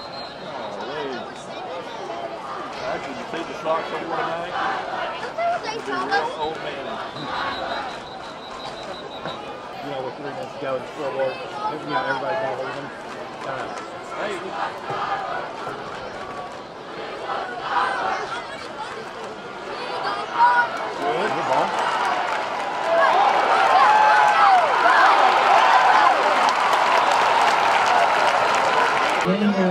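A large stadium crowd murmurs and shouts.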